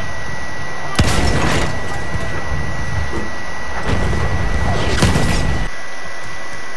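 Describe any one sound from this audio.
A cannon shell explodes with a loud boom.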